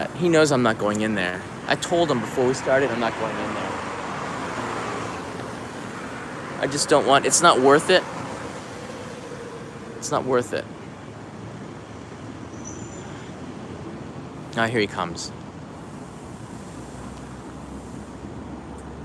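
Traffic hums steadily on a street nearby.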